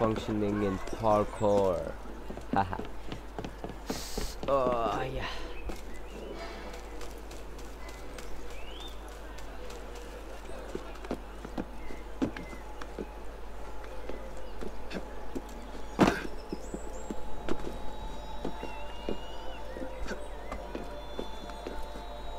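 Hands grip and scrape on stone while climbing.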